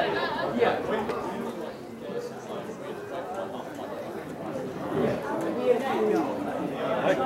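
Young men talk and call out to each other outdoors.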